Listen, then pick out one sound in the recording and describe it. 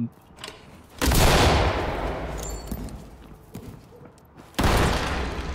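A smoke grenade bursts and hisses loudly.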